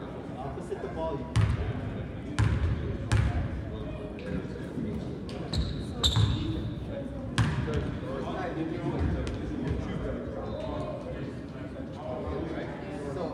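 Young people talk and call out in the distance.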